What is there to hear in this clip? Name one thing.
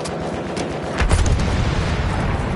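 A rifle fires with a loud, booming shot.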